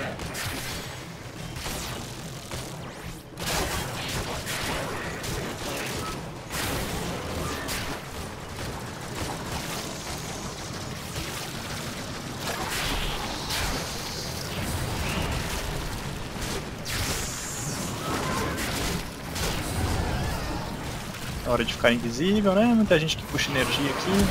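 Game combat sounds of clashing blades and bursts play throughout.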